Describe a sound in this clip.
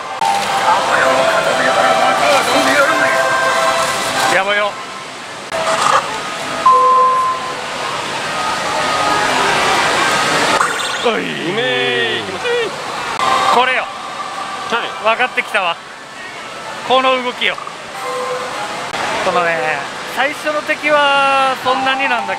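A slot machine plays bright electronic music and chimes.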